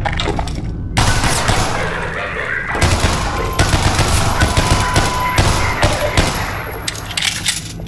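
Pistol shots fire in quick bursts, echoing off hard walls.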